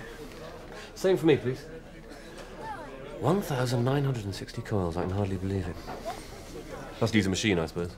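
A man speaks intently, close by, in a low voice.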